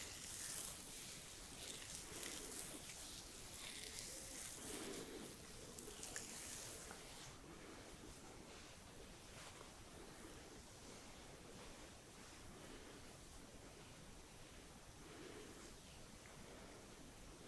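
Hands softly rub and brush against skin close by.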